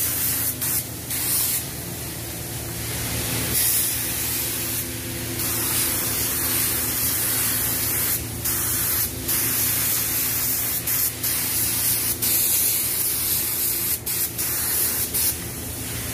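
A spray gun hisses as it sprays paint.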